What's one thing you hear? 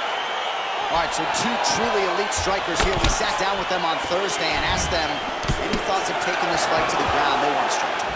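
Punches thud against a fighter's body.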